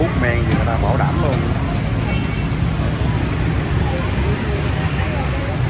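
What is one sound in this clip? Street noise and crowd murmur hum steadily outdoors.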